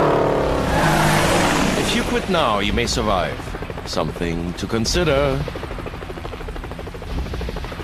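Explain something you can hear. A helicopter's rotor thumps and whirs close by.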